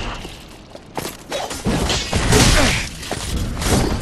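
Metal weapons clash and swing.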